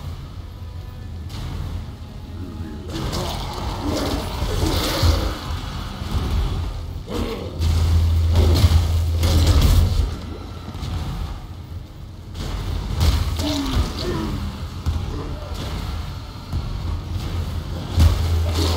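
Whirling gusts of magic whoosh and crash in a game.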